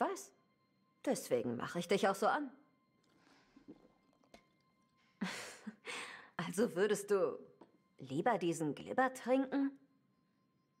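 A second young woman answers in a low, calm voice, close by.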